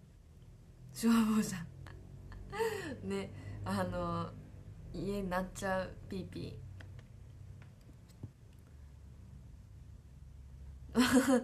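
A young woman speaks softly and cheerfully close to a microphone.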